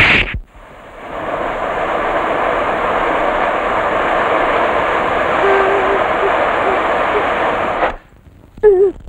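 A welding torch hisses steadily.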